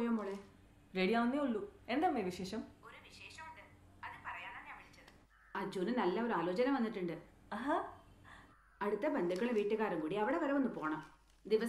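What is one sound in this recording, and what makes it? A young woman talks cheerfully on a phone, close by.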